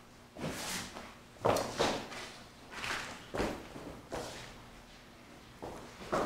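Footsteps shuffle across a wooden floor in a large echoing room.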